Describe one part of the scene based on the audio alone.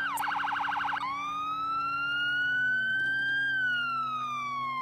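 A police siren holds a long steady tone that slowly rises and then falls.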